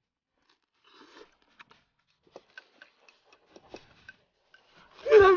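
A man chews food noisily.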